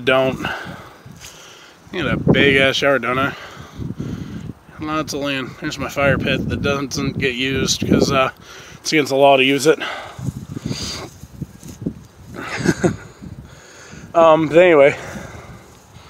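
A young man talks casually, close to the microphone.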